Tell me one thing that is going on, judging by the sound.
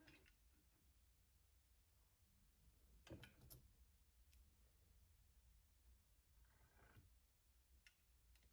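Wooden boards knock and clatter as they are handled on a bench.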